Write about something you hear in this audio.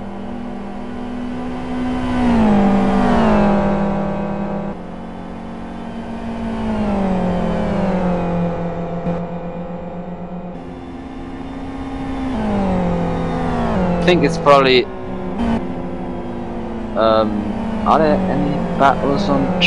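Racing car engines roar, rising and falling in pitch as they pass and shift gears.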